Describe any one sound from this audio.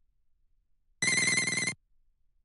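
A bright electronic jingle chimes briefly.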